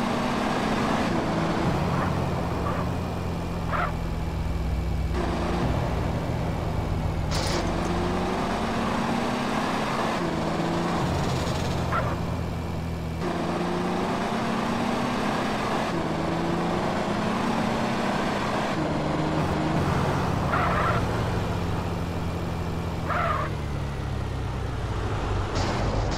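A car engine hums steadily and revs up and down as it drives.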